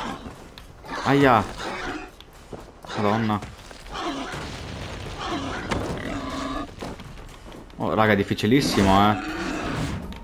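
A huge beast roars and squeals loudly.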